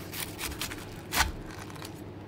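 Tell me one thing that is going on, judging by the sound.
A knife crunches through a crisp crust.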